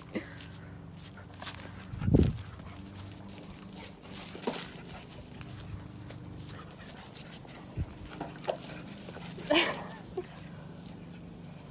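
A large dog's paws patter across grass.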